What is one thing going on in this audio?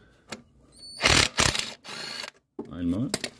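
An impact wrench rattles loudly as it spins a bolt.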